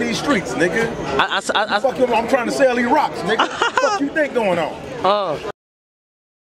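A man raps energetically close to the microphone.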